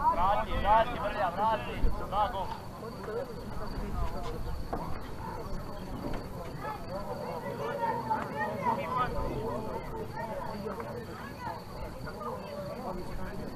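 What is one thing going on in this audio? Footballers shout to each other across an open field, heard from a distance.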